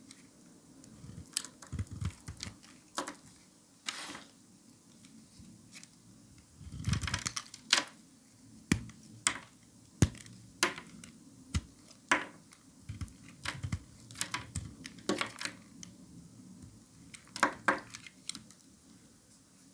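Soap shavings drop and tap onto a pile.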